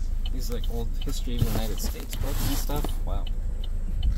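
A cardboard box of books thumps down onto a car seat.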